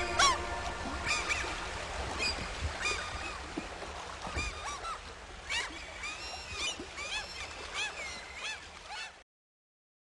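Water birds call over and over, outdoors.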